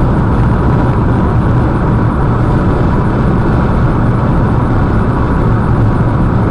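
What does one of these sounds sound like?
A car drives steadily along a road, with a low engine rumble and tyre noise from inside.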